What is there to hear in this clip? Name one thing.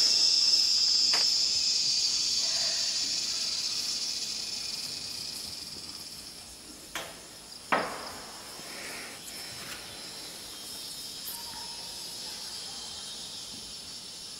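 Bare feet thump and slide on a wooden floor.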